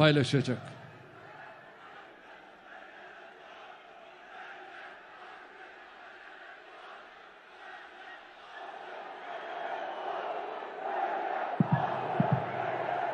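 A large crowd cheers and roars, growing louder.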